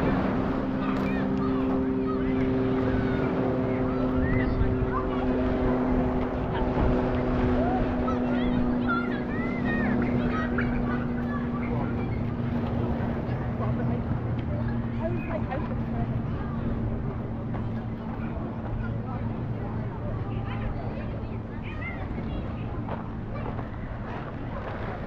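A crowd of men, women and children chatters and calls out at a distance outdoors.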